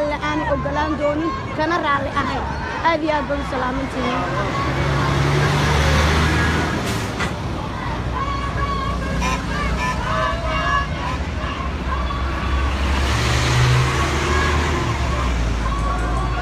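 A crowd of protesters chants and shouts outdoors.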